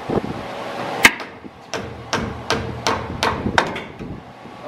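A ratchet wrench clicks in quick turns.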